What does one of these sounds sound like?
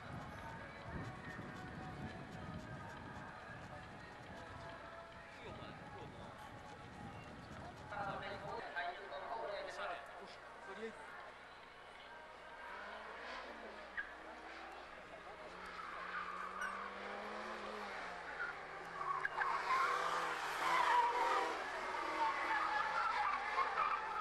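A race car engine roars and revs as the car drives along the track.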